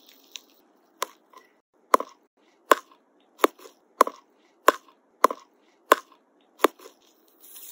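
A needle pricks a stretched rubber glove with sharp, evenly spaced pops.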